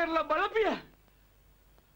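A man shouts angrily, close by.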